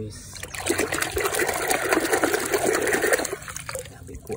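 Thick mud squelches and splashes as a hand stirs it.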